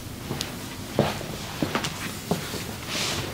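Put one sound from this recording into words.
Neck joints crack sharply several times.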